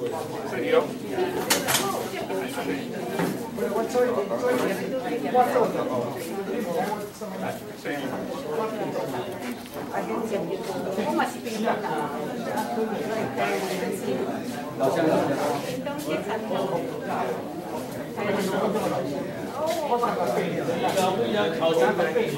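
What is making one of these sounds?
Several men chat in a room with an echo.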